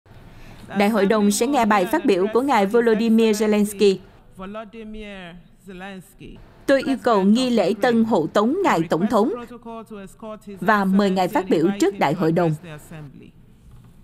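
A woman speaks steadily through a microphone.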